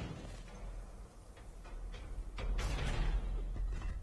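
A metal door swings open.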